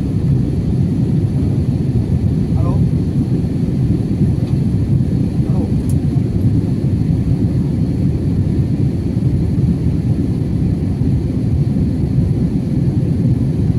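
Jet engines roar steadily in a deep, constant rumble.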